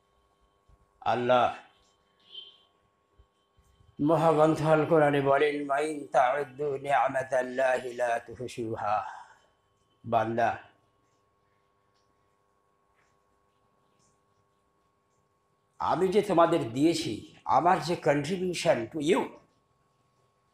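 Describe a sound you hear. An elderly man speaks slowly and earnestly into a headset microphone, with long pauses.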